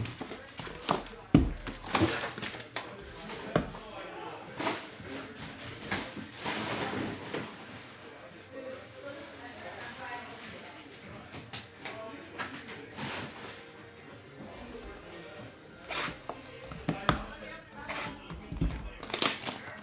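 Cardboard boxes knock and slide on a table.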